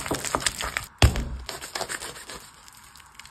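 A knife saws through a crusty loaf of bread.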